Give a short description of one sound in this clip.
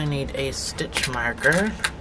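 Plastic stitch markers rattle in a small box.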